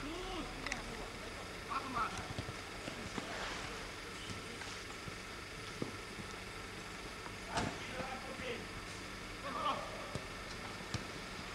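Men shout to each other outdoors during a football game.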